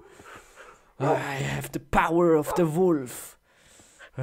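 Zombies groan nearby.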